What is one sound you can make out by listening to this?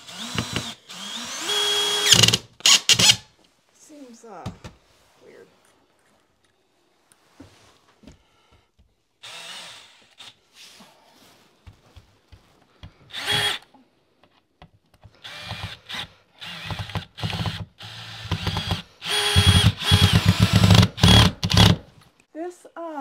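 A power drill whirs in short bursts close by.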